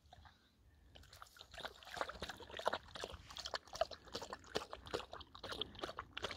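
A dog laps water rapidly from a stream.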